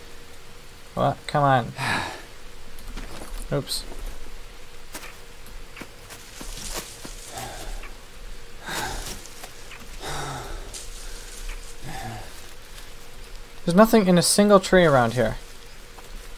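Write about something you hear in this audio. A young man talks now and then, close to a microphone.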